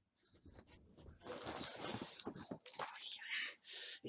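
Headphones rustle as they are handled close to a microphone.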